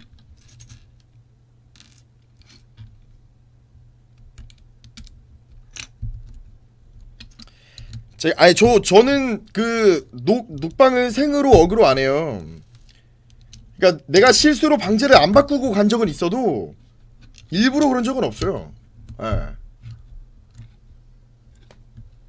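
Plastic toy bricks click and clatter softly.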